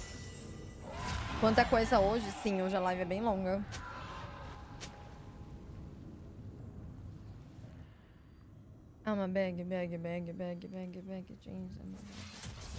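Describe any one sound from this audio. A young woman talks close to a microphone.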